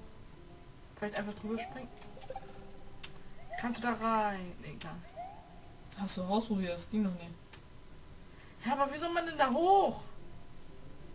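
Chiptune video game sound effects blip and chime.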